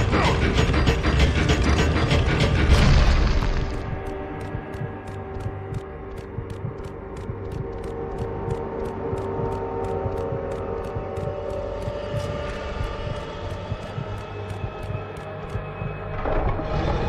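Quick footsteps run across a stone floor.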